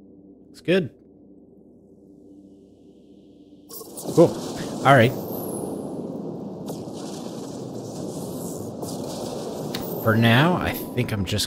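A laser beam fires with a steady hum.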